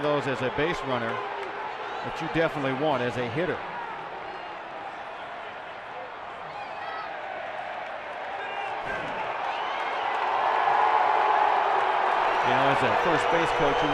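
A stadium crowd murmurs and cheers in the background.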